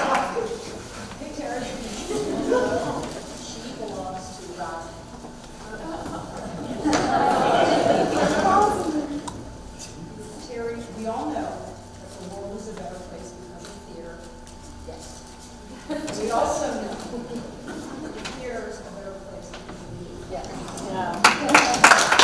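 An elderly woman speaks to an audience.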